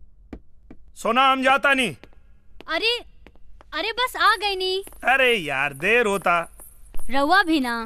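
A man sings loudly with feeling.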